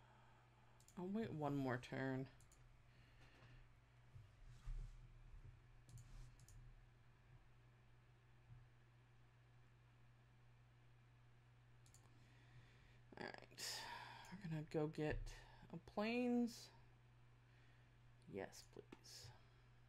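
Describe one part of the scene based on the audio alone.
A woman talks with animation close to a microphone.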